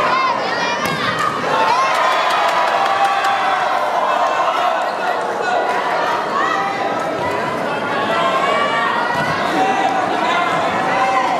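A large crowd cheers and shouts loudly, echoing in a big indoor hall.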